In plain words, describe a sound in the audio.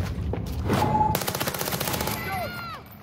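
A gun fires a rapid burst of loud shots that echo in a tunnel.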